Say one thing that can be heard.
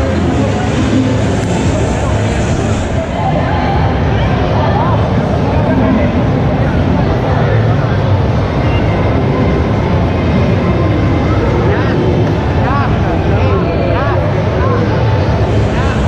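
Video game sound effects chirp from a nearby television.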